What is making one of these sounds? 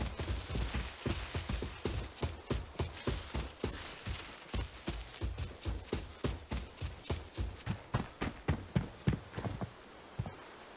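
Quick footsteps thud steadily, first through rustling grass and then on a hard floor.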